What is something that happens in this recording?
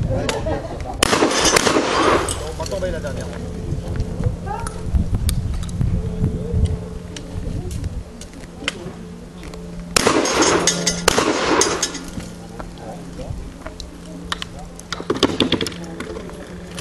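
A gun fires outdoors, each shot cracking loudly and echoing.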